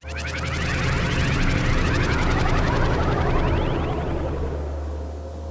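A flying saucer's beam hums with a warbling, sliding electronic whine.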